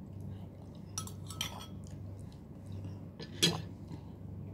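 A spoon clinks against a bowl.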